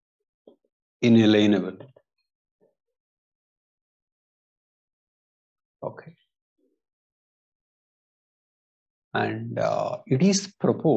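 A man speaks calmly and slowly into a close microphone, with long pauses.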